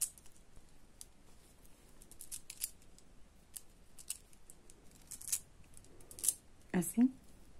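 Small plastic beads click softly against each other.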